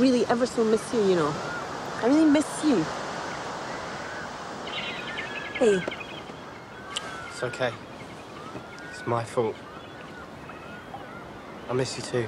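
Waves wash gently onto a pebble shore.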